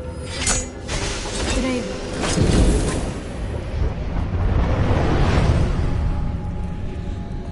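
A magical blast roars and whooshes loudly, then dies away.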